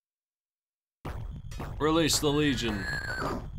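Retro video game sound effects chirp and warble.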